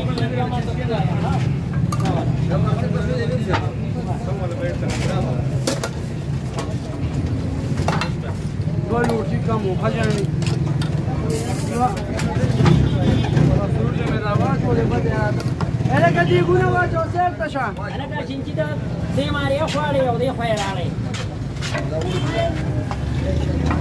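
A gas burner roars steadily under a pot.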